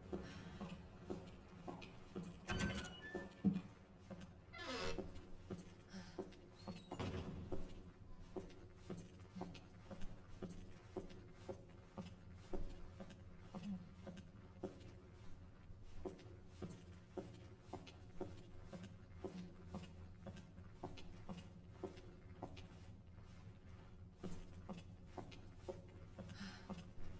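Slow footsteps creak on a wooden floor.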